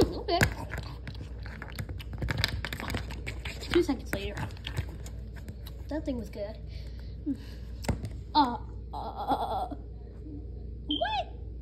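Small plastic toys tap and clatter on a hard floor.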